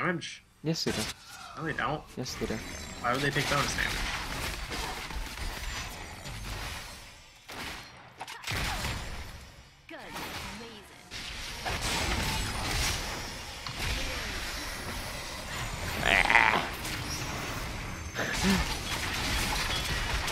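Game spell effects whoosh and clash in a fight.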